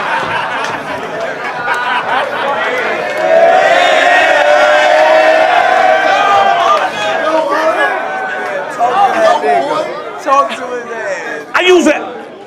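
A young man raps loudly to a crowd.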